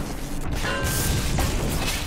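An electric bolt crackles and zaps.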